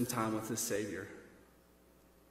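A man speaks through a microphone.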